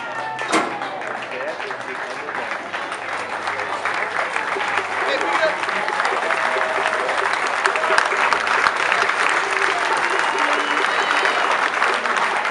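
A crowd cheers and shouts outdoors.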